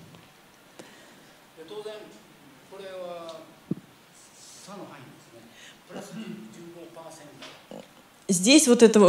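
An elderly man speaks calmly off-microphone, more faintly.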